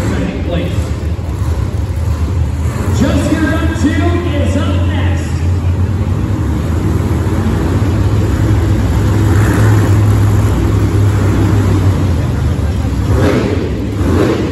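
A monster truck engine roars and revs loudly in a large echoing arena.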